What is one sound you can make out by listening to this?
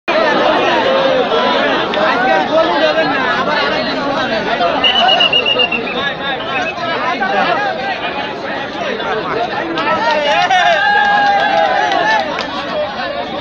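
A large outdoor crowd shouts and cheers loudly.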